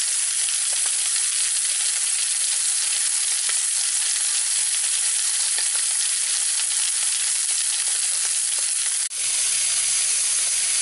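Meat sizzles and crackles loudly in hot fat.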